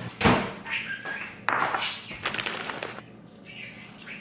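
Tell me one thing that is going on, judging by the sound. Food crumbles and drops into a bowl.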